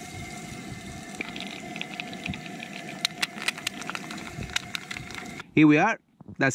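An egg sizzles and crackles in hot oil in a pan.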